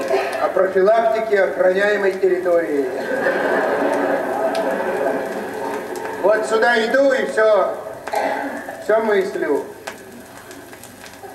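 A needle crackles softly on a spinning record.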